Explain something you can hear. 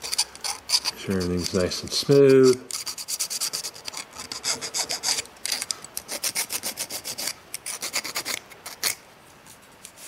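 Small metal parts click and scrape against each other.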